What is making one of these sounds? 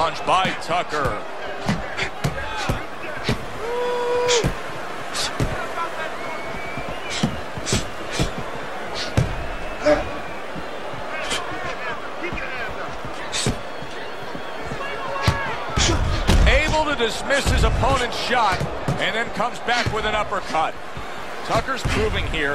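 Punches thud against gloves and bodies.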